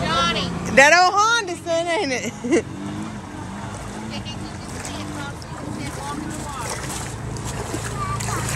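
A quad bike engine revs and rumbles while driving through water.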